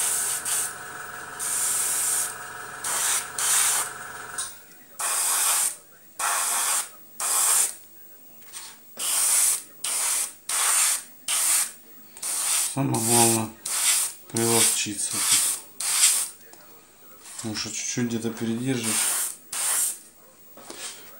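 An airbrush sprays in short hissing bursts.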